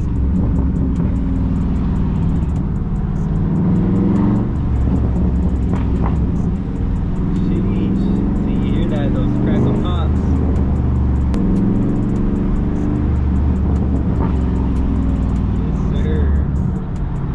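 Wind rushes past an open car window.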